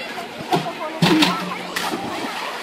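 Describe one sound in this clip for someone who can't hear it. A young man jumps and splashes loudly into a pool.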